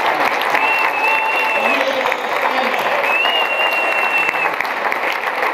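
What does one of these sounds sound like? A crowd claps steadily and loudly.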